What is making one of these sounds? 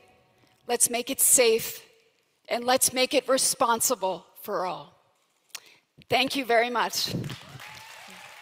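A woman speaks through a microphone in a large hall, with calm emphasis.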